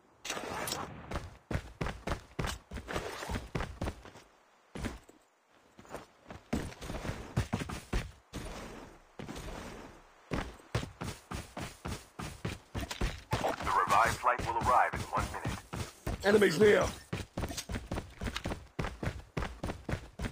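Footsteps run quickly over hard ground and grass.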